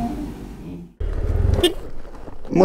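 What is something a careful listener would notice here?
A motorcycle engine rumbles.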